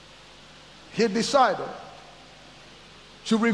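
A middle-aged man speaks loudly and expressively into a microphone in a large echoing room.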